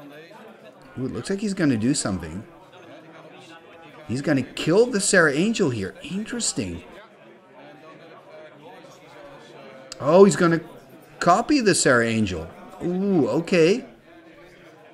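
A man talks calmly, close by, in short bursts.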